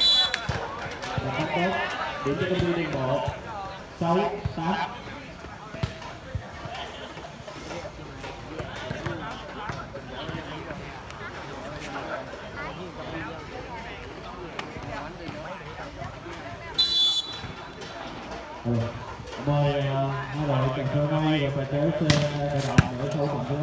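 Young men shout and call out outdoors.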